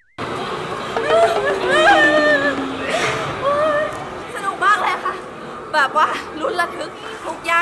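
A young woman shrieks and squeals in fright close by.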